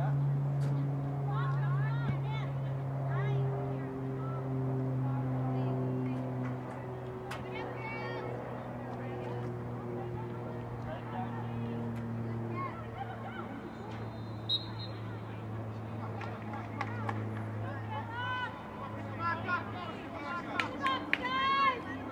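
Young women shout and call out across an open field.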